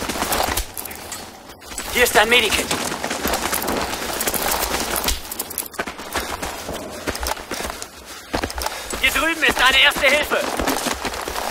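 Gunshots crack in bursts, near and far.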